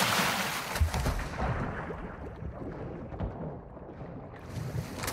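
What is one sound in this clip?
Water gurgles and bubbles underwater.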